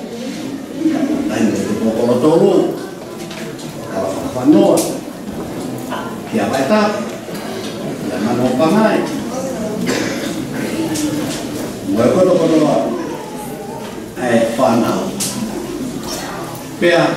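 An elderly man speaks steadily through a microphone and loudspeakers in a room with some echo.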